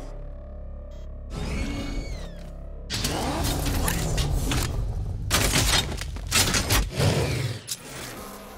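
A powerful car engine rumbles and roars.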